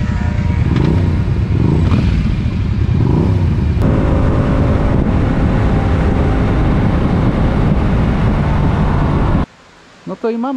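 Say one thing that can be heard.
A motorcycle engine hums loudly while riding.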